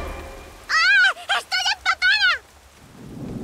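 A young girl whines in distress, close by.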